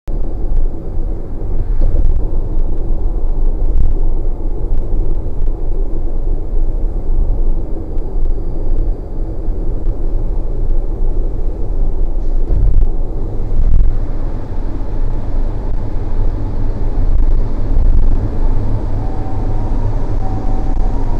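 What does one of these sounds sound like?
A vehicle's engine and tyres rumble steadily on a highway.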